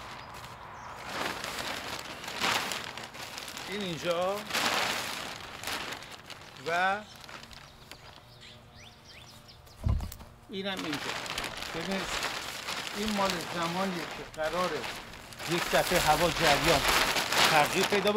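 Plastic sheeting crinkles and rustles as it is pulled.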